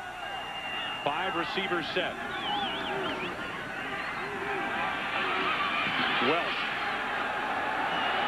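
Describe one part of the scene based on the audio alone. A large stadium crowd roars, growing louder.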